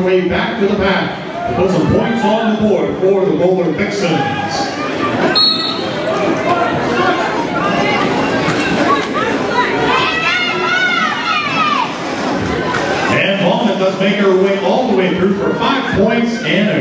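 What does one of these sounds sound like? Roller skate wheels rumble across a wooden floor.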